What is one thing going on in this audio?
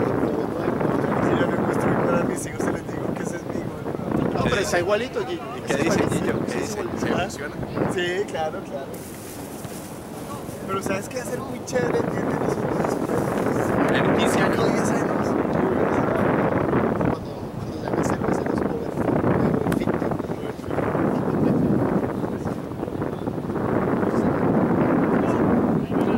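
Players call out to each other across an open field, faint and far off.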